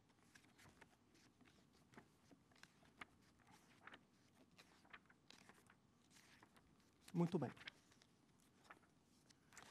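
Pages of a thick book rustle as they are turned.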